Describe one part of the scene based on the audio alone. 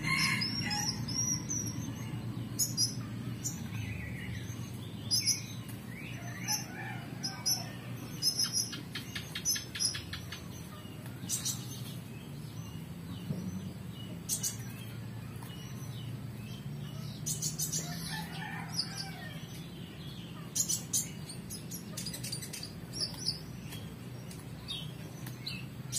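Roosters step and scuffle on dry dirt and twigs.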